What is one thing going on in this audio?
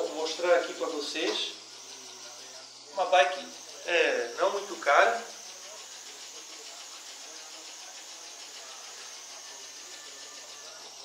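An exercise bike whirs steadily as it is pedalled.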